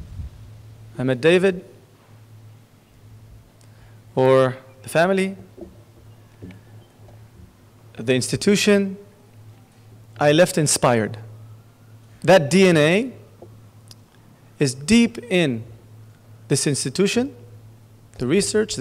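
A middle-aged man speaks slowly and deliberately into a microphone, with long pauses.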